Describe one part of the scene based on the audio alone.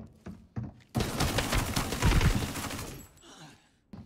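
Gunfire rattles in a rapid, loud burst.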